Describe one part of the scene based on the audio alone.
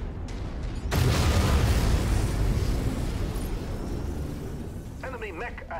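A loud blast roars and slowly fades.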